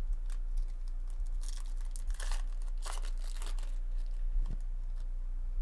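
Foil wrappers crinkle and rustle as they are torn open and handled.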